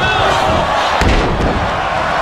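A body slams down onto the wrestling mat with a heavy thud.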